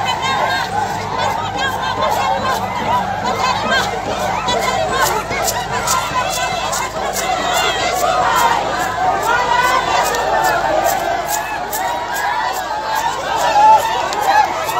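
People in a crowd clap their hands.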